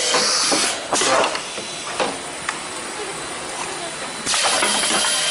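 A rotary capsule filling and sealing machine clatters as its turntable indexes.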